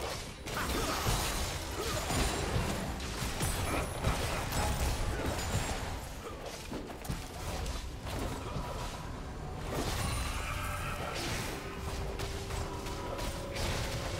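Game spell effects and weapon hits clash and crackle.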